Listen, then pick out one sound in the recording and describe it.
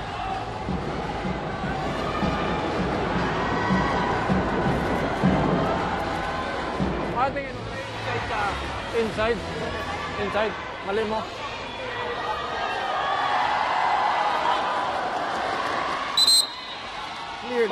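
A crowd cheers and chatters in a large echoing arena.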